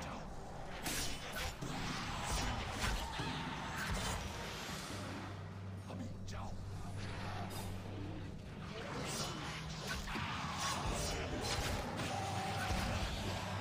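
Heavy blows and thuds land in a fight, over and over.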